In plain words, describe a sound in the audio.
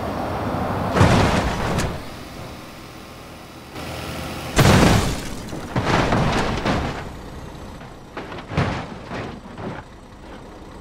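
A truck crashes with loud metal bangs and crunches.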